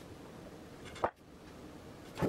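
A wooden board knocks onto a wooden bench.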